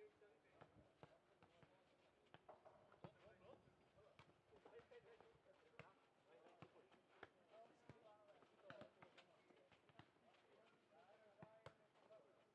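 Tennis balls are struck with rackets again and again, somewhat distant, outdoors.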